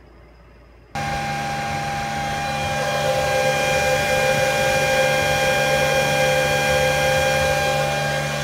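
A cooling fan whirs loudly with a steady high whine.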